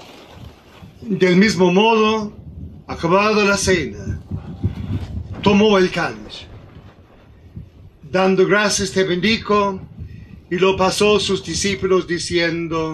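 An elderly man speaks slowly and solemnly through a microphone, echoing slightly.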